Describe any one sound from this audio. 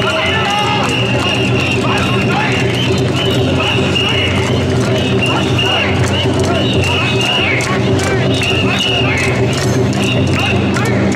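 A dense crowd murmurs and shouts outdoors.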